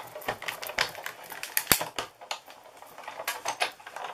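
A die-cutting machine creaks and clicks as a hand crank turns.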